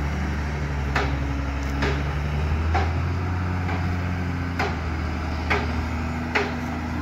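Metal clanks sharply against metal at irregular intervals.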